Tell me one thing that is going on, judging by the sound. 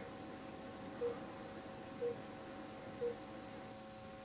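Short electronic beeps sound from a television speaker, a few times.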